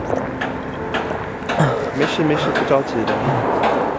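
A young man speaks briefly nearby.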